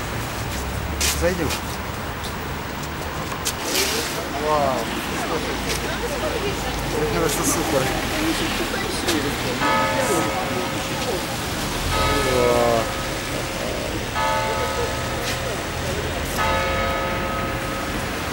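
Cars drive by on a wet street.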